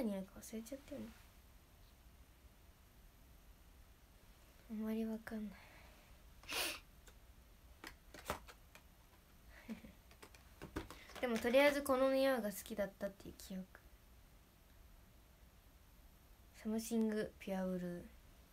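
A young woman speaks softly and casually close to a microphone.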